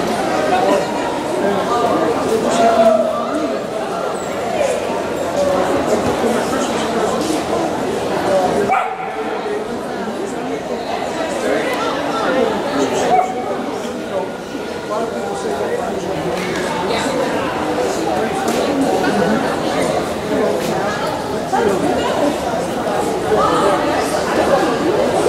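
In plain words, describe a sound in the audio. A woman calls out to a dog at a distance in a large echoing hall.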